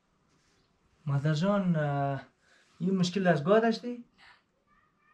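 An elderly woman speaks calmly nearby.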